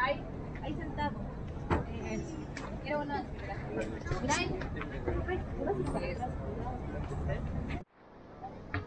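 Several young adults chatter and laugh nearby outdoors.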